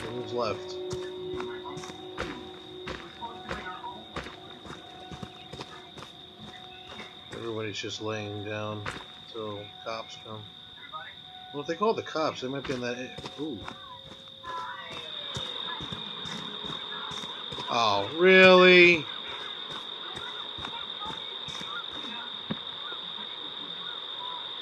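Heavy footsteps tread steadily on a dirt path.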